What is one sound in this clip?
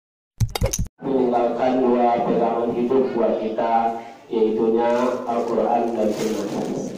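A young man recites in a melodic, chanting voice through a microphone.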